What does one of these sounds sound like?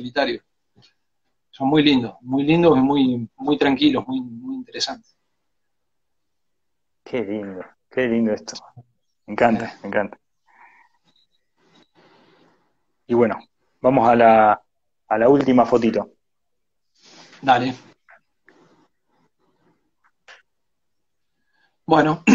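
A middle-aged man talks calmly over an online call.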